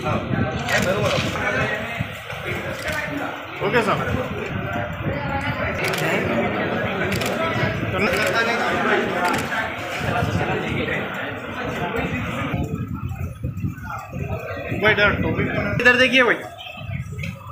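A crowd of men chatters loudly nearby.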